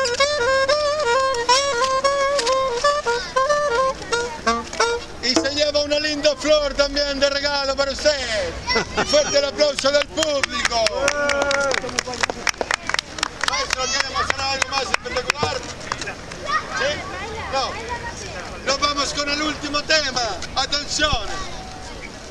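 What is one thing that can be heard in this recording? A saxophone plays a bouncy melody outdoors.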